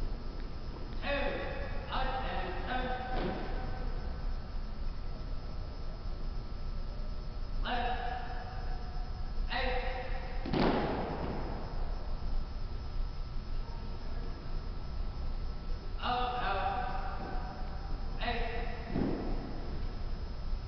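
A man shouts drill commands that echo through a large hall.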